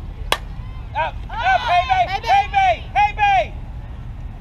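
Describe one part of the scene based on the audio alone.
Young women and girls shout and cheer loudly nearby.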